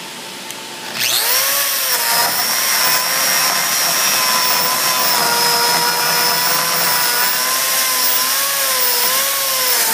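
An electric grinder whines loudly as it grinds rubber.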